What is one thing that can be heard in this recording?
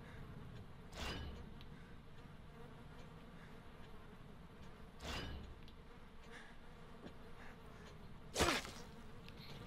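A knife stabs wetly into flesh, again and again.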